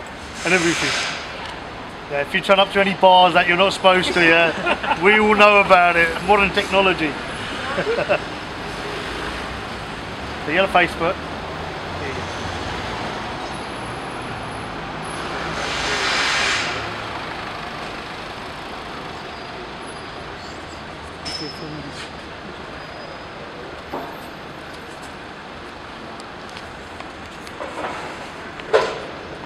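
Traffic hums steadily in the background.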